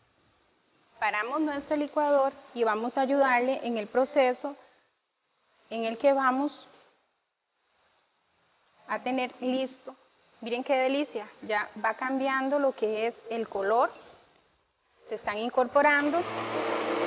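A young woman talks calmly and clearly into a microphone.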